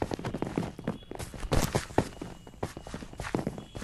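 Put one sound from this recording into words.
Stone blocks thud softly as they are placed one after another.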